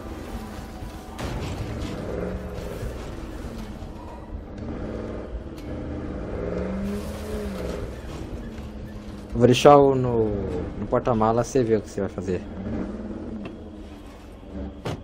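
A pickup truck engine rumbles and revs as it drives.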